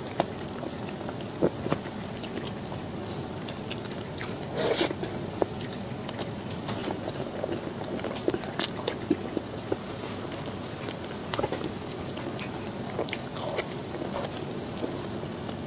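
A metal spoon scrapes and taps against a plate.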